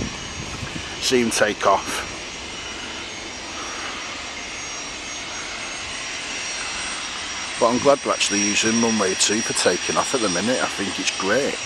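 A jet engine whines steadily as a plane taxis nearby.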